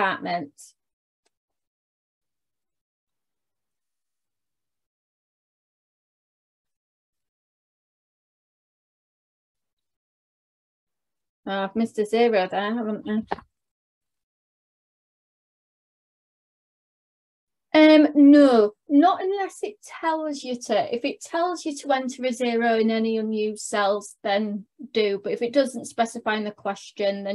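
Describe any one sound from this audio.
A young woman speaks in an explaining tone through a microphone on an online call.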